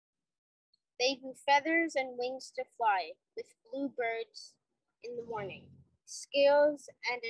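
A child reads aloud from a book over an online call.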